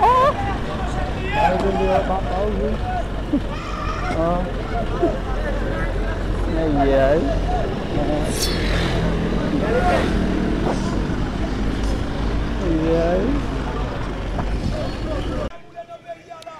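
Men shout excitedly outdoors.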